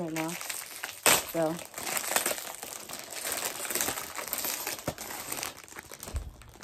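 Paper packaging rustles and crinkles as it is torn open.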